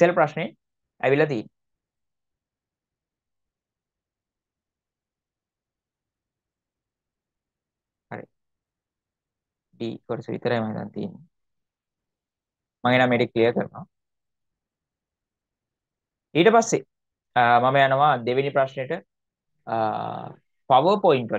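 A young man speaks calmly into a microphone, explaining in short phrases with pauses.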